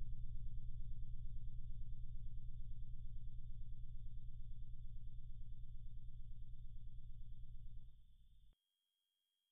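A low, harsh electronic buzz drones steadily, then cuts off.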